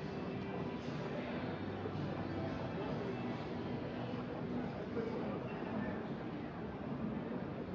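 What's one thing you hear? Slot machines chime and jingle in a large, busy hall.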